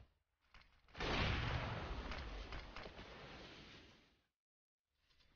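A rifle fires a loud shot that rings out and slowly fades.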